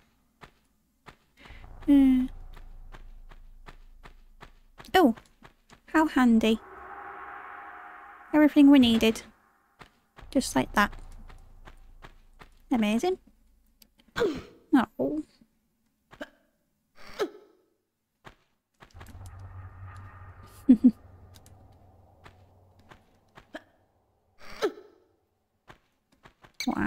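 Footsteps slap quickly on stone.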